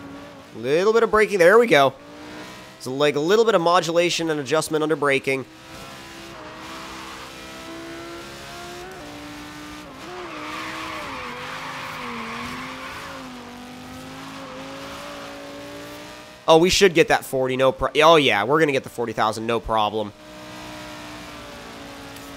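A sports car engine roars steadily, rising and falling in pitch as the car speeds up and slows down.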